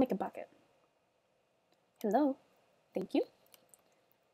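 A young woman speaks briefly into a nearby microphone.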